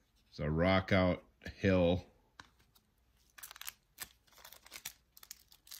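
Card packs crinkle and rustle in hands.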